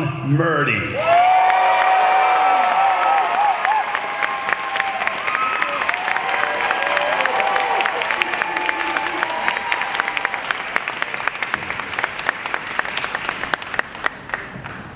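A crowd claps and applauds steadily.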